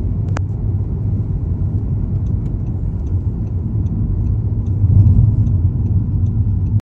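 A car engine hums steadily from inside the car as it drives along a road.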